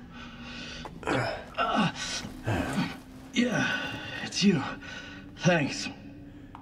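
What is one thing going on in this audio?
A man answers weakly and haltingly, muffled through a gas mask.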